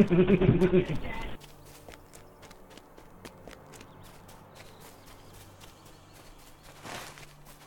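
A horse's hooves clop at a steady pace.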